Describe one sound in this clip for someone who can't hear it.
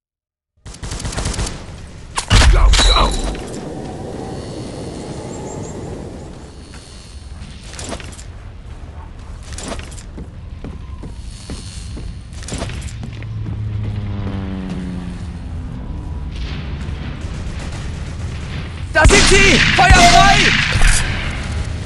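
Gunshots fire in loud, quick bursts.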